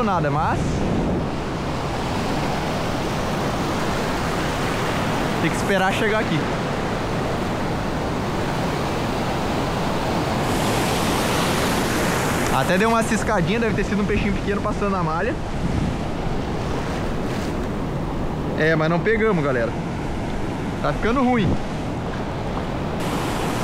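Surf washes and churns close by.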